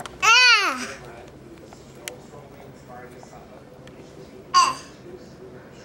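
A young child squeals loudly close by.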